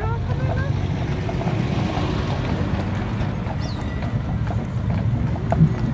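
A tram rolls past close by.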